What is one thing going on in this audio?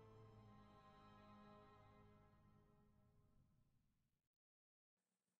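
Gentle music swells and then fades out.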